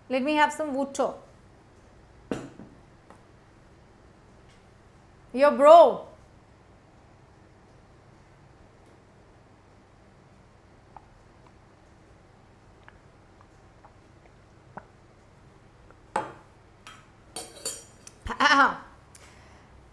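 A young woman speaks calmly into a close microphone.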